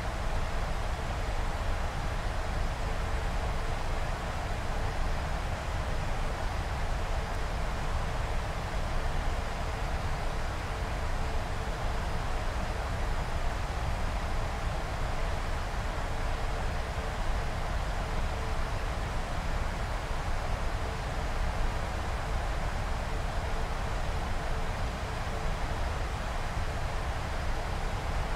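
Wind rushes steadily past the aircraft.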